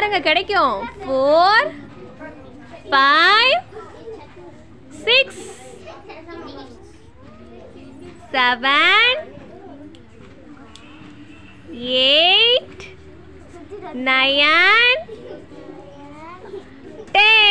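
Young children call out loudly together in short, falling bursts.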